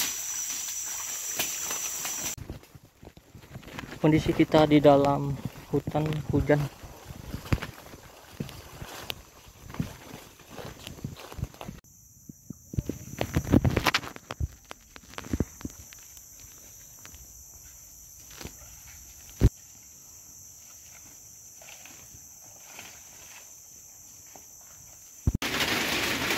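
Leaves and branches swish against a person moving through them.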